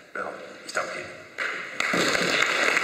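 An older man speaks briefly through a microphone in a large hall.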